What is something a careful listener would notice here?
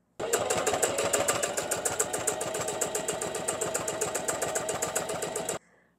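A sewing machine runs fast with a rapid, even clatter.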